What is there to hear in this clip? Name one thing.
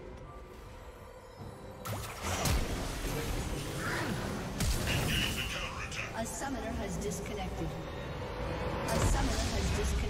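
Magic spells crash and whoosh in a fast fight.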